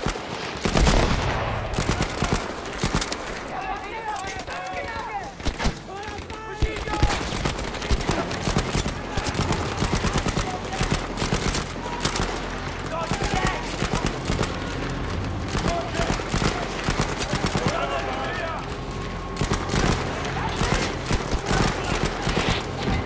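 Gunfire and explosions crack and boom in rapid bursts.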